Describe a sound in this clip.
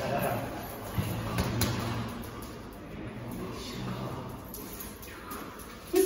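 A man speaks encouragingly to a dog.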